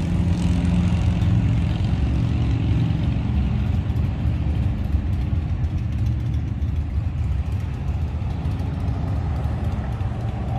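A large motorhome drives past with a low engine rumble.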